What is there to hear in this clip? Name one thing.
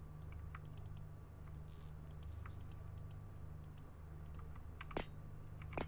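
Soft clicks sound as building blocks snap into place.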